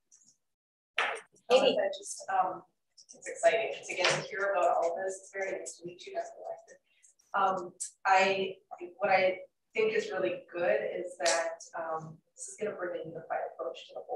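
A woman speaks calmly, heard through a microphone over an online call.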